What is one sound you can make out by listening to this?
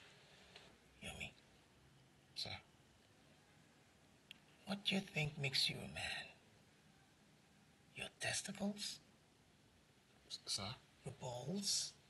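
A middle-aged man speaks intently and close by, in short bursts.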